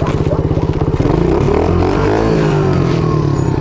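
A motorbike engine revs up as the bike pulls away.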